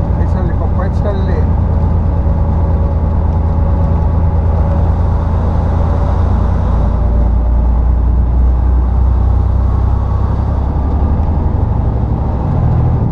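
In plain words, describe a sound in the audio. An engine drones low from inside a vehicle's cab while climbing.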